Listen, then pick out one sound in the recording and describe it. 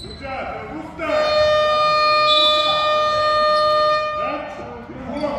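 A referee blows a long, shrill whistle.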